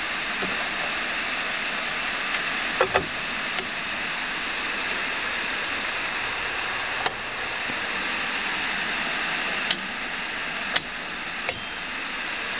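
A key turns in a lock with a sharp click.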